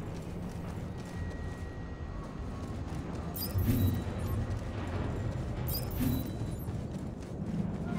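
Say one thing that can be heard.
Footsteps run across a metal floor.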